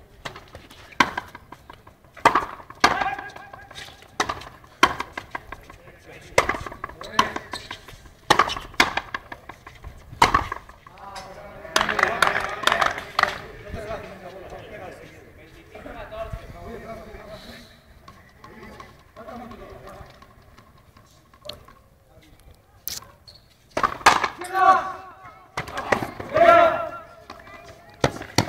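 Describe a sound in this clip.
A ball smacks sharply against a wall and rackets, echoing outdoors.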